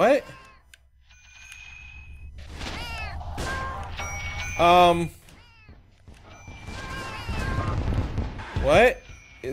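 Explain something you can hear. Arcade laser shots zap rapidly.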